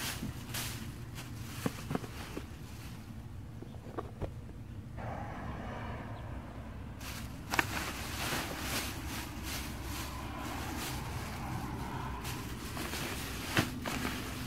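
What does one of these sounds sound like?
A plastic bag rustles and crinkles up close.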